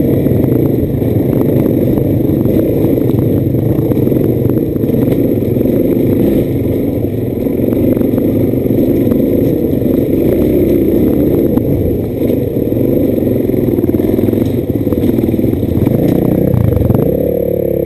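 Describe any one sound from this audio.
A dirt bike engine roars up close, revving up and down.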